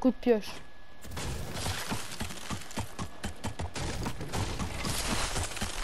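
Footsteps clatter quickly on wooden boards.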